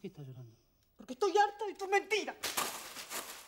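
A woman speaks up suddenly.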